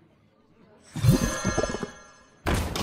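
A magical whoosh sounds as a card is played.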